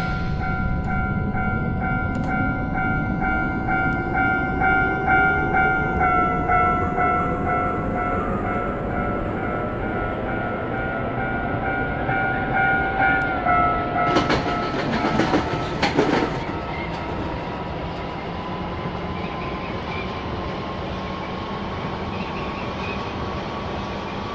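Train wheels rumble steadily on the rails.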